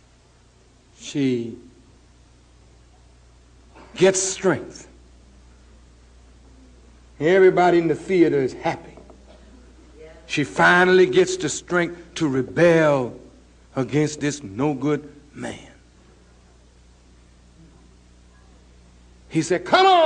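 A man speaks slowly and forcefully into a microphone, with long pauses.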